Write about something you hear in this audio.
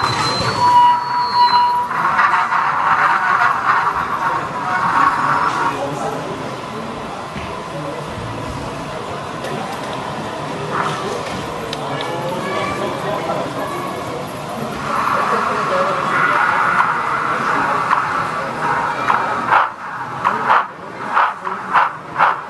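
A model train rolls slowly along the tracks with a soft, steady rumble.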